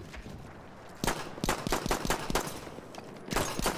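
A pistol fires several quick shots.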